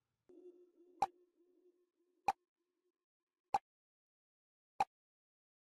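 A countdown timer ticks with sharp, evenly spaced clicks.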